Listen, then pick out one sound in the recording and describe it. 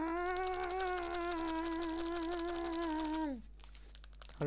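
A creature lets out a long, wavering, eerie groan that slides down and stops.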